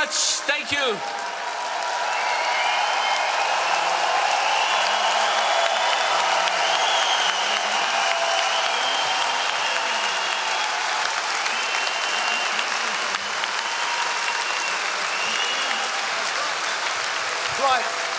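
A large crowd cheers, whistles and claps in a large echoing hall.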